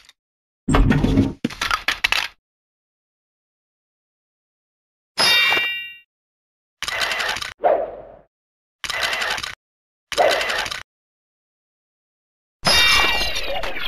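A sword clashes again and again against a skeleton in short bursts.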